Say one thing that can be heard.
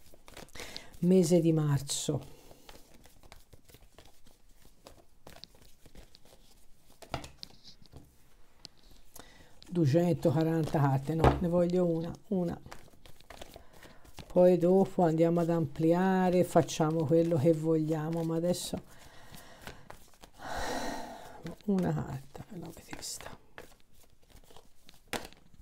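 Playing cards rustle and flick softly as they are shuffled by hand.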